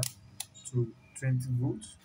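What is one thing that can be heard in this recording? A multimeter dial clicks as it is turned.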